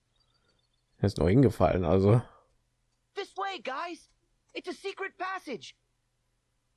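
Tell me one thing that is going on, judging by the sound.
A man speaks with animation in a goofy cartoon voice.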